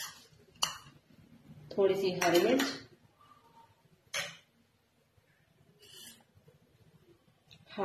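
A spoon taps against a bowl.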